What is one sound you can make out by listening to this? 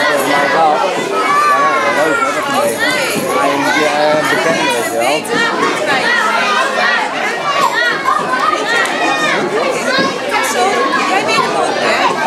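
A crowd of young children chatter and call out excitedly, close by in a large room.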